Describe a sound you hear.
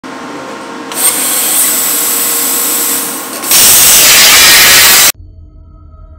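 A plasma cutter hisses loudly as it cuts metal.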